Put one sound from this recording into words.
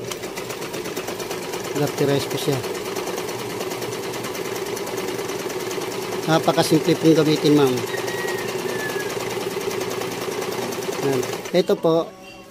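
A sewing machine runs with a steady, close whirr.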